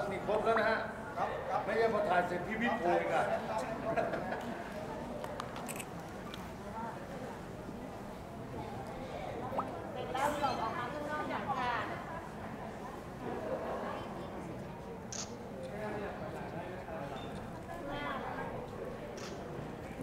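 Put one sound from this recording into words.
A crowd of young people chatters and murmurs indoors.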